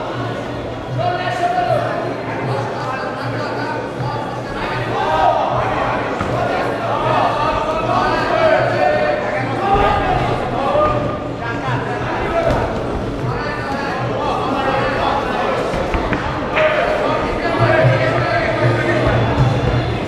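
Men shout encouragement loudly in a large echoing hall.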